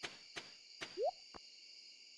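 A short rising pop sounds.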